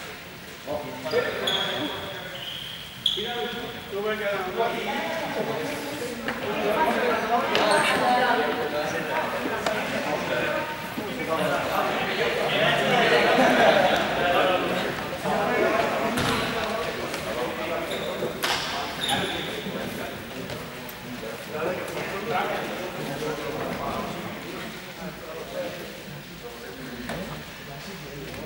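Young people talk and shout all around, echoing in a large hall.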